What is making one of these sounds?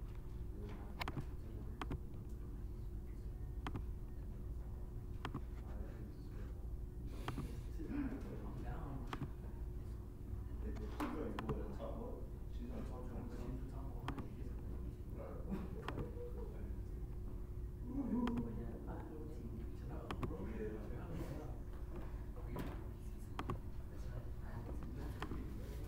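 A computer mouse clicks now and then.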